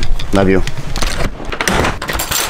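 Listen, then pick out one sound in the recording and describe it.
A door handle rattles and clicks.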